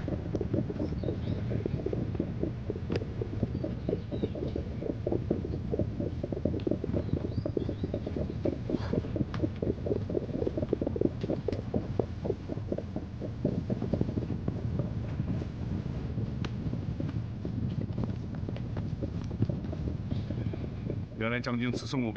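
Many horses' hooves thud and clatter steadily.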